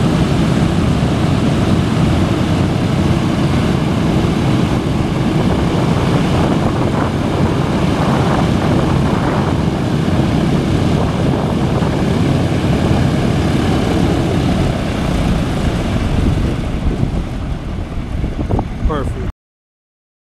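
Propeller engines of a large aircraft roar and rumble steadily nearby.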